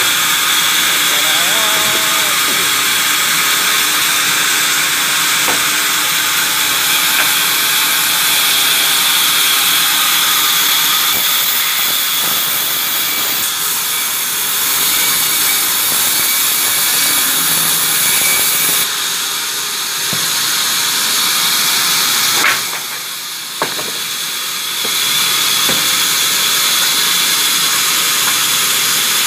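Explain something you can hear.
A large sawmill band saw whines as it cuts through a log.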